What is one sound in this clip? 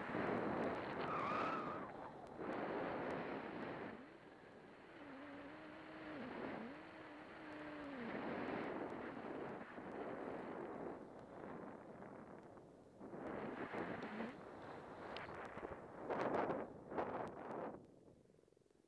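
Skis hiss and scrape over crusty snow in bursts.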